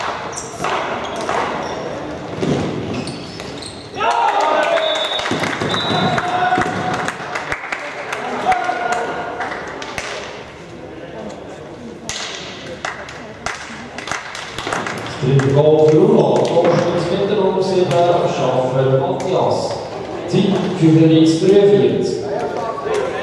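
Young men shout and call out to each other, echoing around a large hall.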